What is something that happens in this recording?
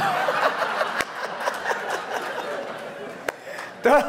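A man laughs heartily into a microphone.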